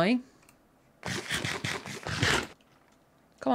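Crunchy chewing sounds of someone eating bread.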